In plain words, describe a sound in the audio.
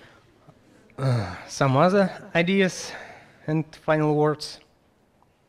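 A young man speaks calmly through a microphone in a room.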